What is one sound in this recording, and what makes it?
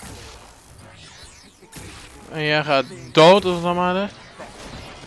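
An energy blast crackles and whooshes.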